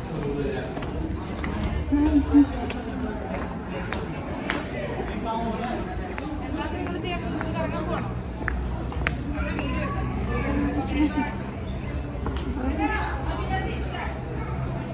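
A crowd of visitors chatters nearby outdoors.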